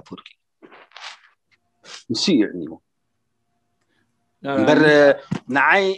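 An elderly man speaks with animation over an online call.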